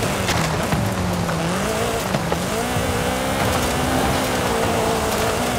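A rally car engine roars at high revs.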